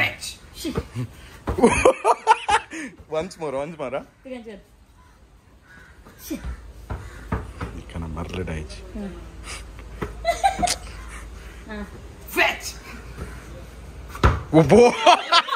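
A young man laughs and talks excitedly.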